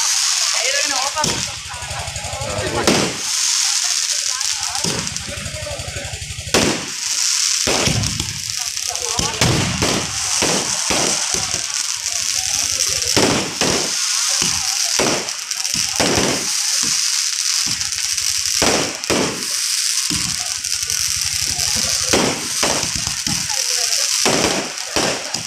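Fireworks burst with loud, sharp bangs, again and again.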